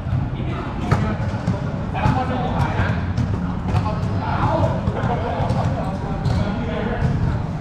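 Several men call out to each other in a large echoing hall.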